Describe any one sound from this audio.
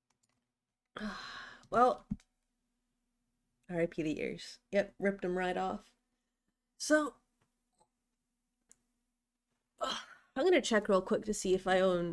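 A young woman speaks playfully and close into a microphone, in short bursts with pauses.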